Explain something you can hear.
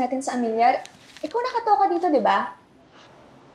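A young woman speaks up close, upset and pleading.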